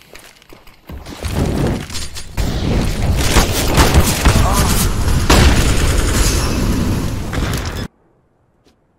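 Rifle shots ring out in quick bursts.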